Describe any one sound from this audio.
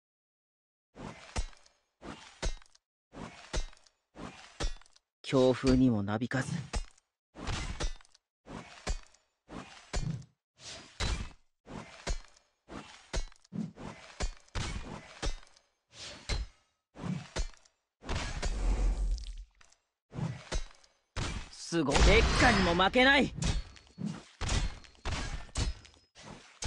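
Heavy weapon blows land in a string of sharp hits.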